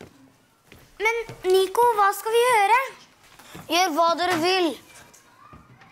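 A young boy asks a question in a worried voice, close by.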